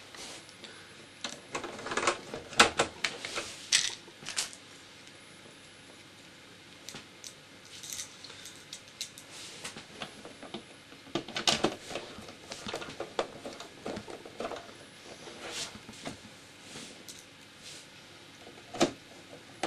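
A screwdriver scrapes and clicks against a plastic casing.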